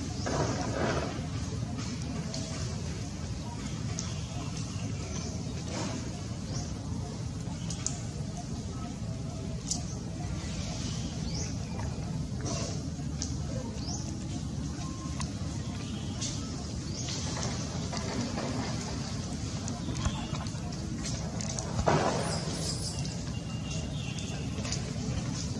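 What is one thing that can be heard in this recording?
A baby macaque chews and slurps on a mango.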